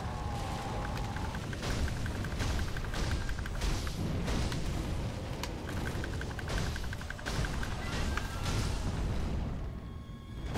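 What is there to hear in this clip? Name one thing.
Blades slash and clang in quick strikes.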